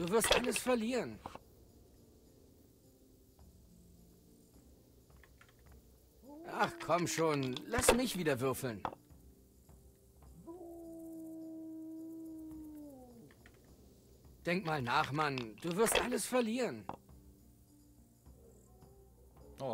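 Dice clatter onto a wooden board.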